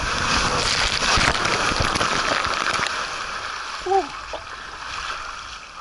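Water splashes hard as a rider lands in a pool.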